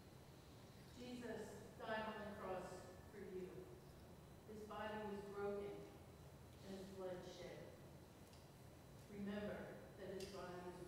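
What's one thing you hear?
A woman speaks calmly to a gathering in a large room, heard from a distance.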